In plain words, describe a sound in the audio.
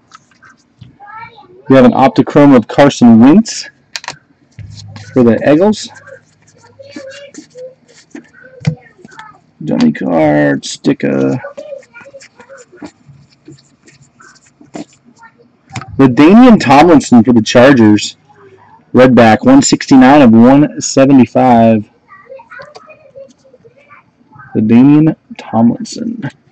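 Trading cards rustle and slide as hands shuffle through them.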